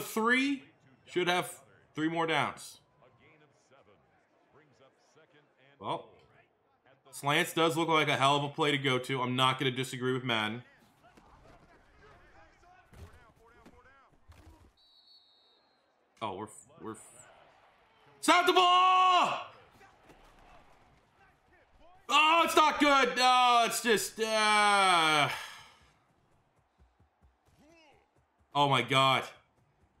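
A young man talks into a microphone in animated bursts.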